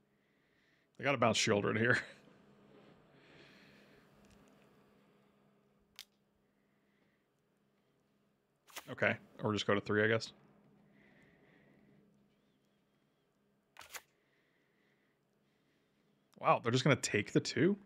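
A middle-aged man talks with animation into a close microphone, in short bursts.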